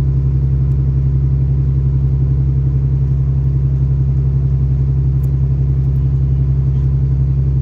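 A train rumbles steadily with a low, droning hum as it rides along the tracks.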